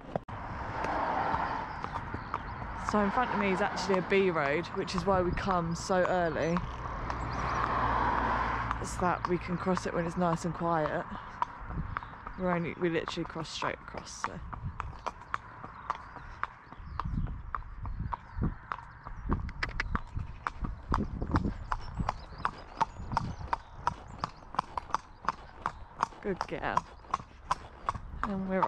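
A horse's hooves clop steadily on a paved road.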